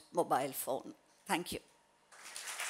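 A woman speaks briefly and warmly into a microphone in a large hall.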